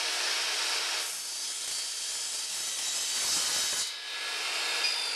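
A saw blade cuts through wood.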